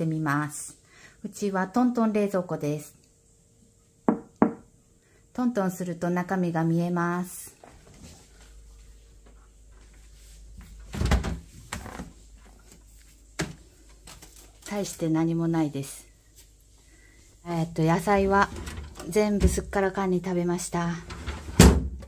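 A woman speaks calmly close to the microphone.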